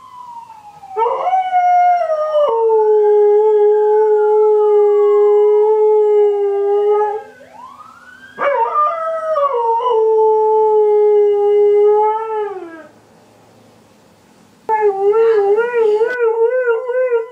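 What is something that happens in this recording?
A dog howls long and loud, in drawn-out, wavering notes.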